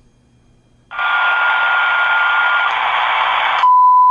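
A radio set gives out a loud, steady hiss.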